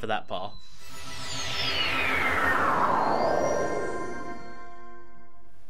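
A shimmering magical whoosh sweeps downward and fades.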